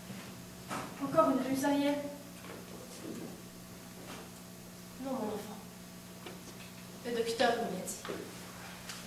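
A young woman speaks theatrically through a microphone, in short bursts with pauses.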